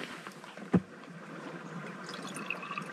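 Water gurgles into a bottle as it is dipped and filled.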